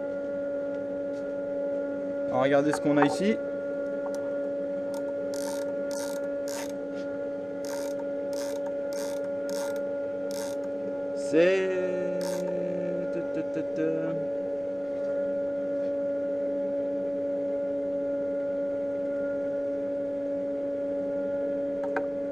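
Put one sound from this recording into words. A lathe motor hums steadily.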